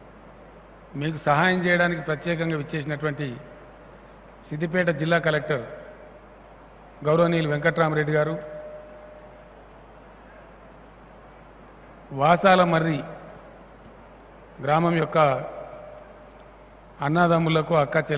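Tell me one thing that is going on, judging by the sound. An elderly man speaks slowly and firmly into a microphone over loudspeakers, with pauses between phrases.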